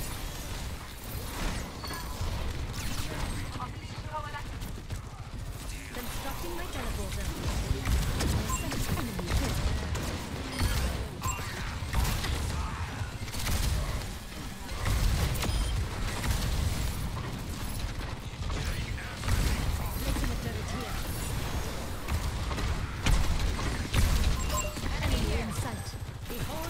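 Game weapons fire in rapid bursts with heavy booming blasts.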